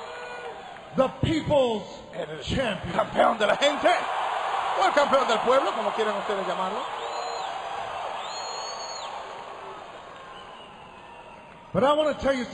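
A man speaks forcefully into a microphone over a loudspeaker in a large arena.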